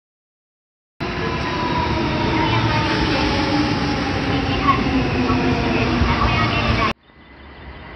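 A train rolls into the station with brakes squealing.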